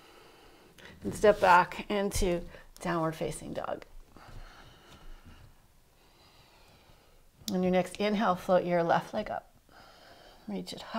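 A woman speaks calmly and clearly, close to the microphone, giving instructions.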